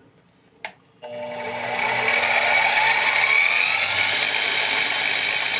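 A drill press motor starts and whirs steadily as the bit bores into a piece of wood.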